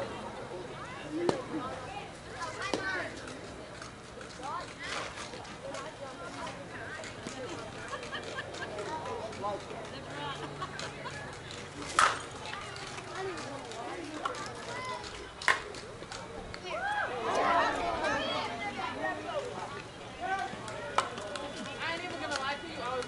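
Men and women players shout and cheer across an outdoor field.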